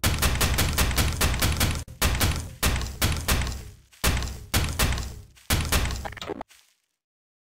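A tool gun zaps rapidly again and again.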